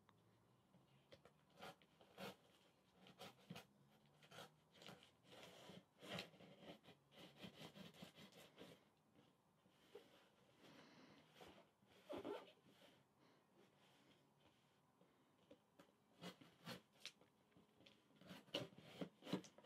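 Hands rub and tap a cardboard box, with scraping and thumping.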